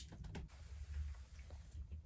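A man gulps a drink from a bottle.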